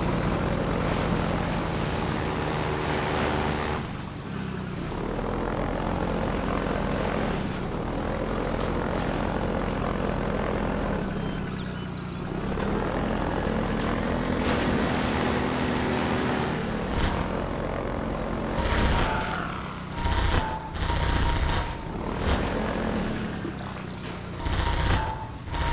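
An engine rumbles steadily and revs as a small buggy drives.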